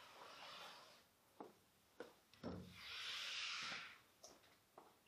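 Chalk scratches on a blackboard.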